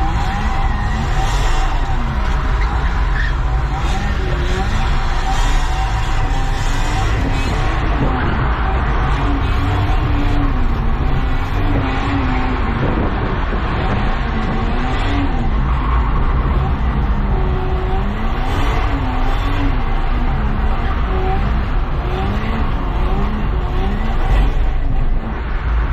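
Windscreen wipers sweep across wet glass.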